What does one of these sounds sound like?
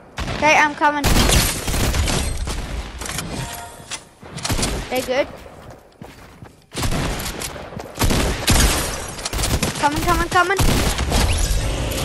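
Rapid gunshots crack in short bursts.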